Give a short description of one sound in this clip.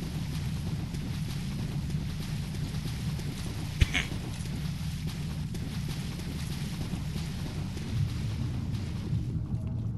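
Armoured footsteps crunch steadily on gravel.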